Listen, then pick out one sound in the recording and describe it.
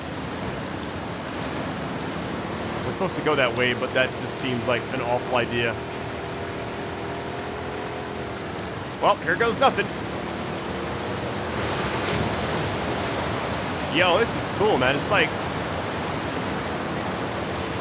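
Water splashes and churns against the hull of a moving boat.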